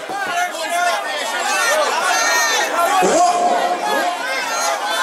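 A crowd of women sings and shouts along loudly.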